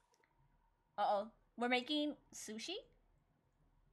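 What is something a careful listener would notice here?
A young woman speaks playfully into a microphone in short bursts.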